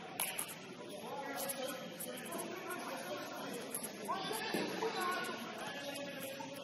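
Players' shoes squeak sharply on a hard indoor court.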